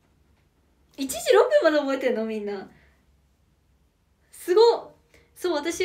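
A young woman laughs behind her hand.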